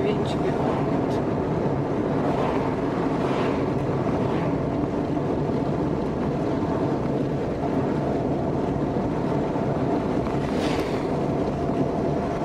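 Oncoming vehicles swish past.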